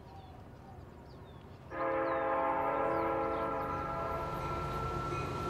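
A train rolls past close by with a heavy rumble.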